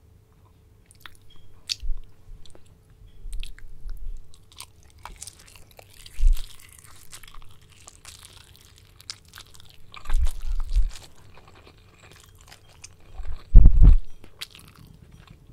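A young woman chews food close to a microphone, with soft wet crunching sounds.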